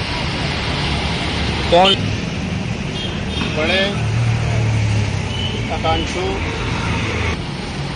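A man speaks calmly to a nearby microphone outdoors.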